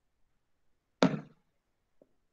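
A plastic bottle is set down on a table with a knock.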